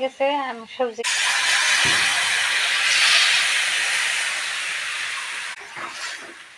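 Vegetables and water pour into a hot pan with a loud, hissing sizzle.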